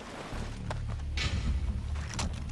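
Hands rummage through cloth.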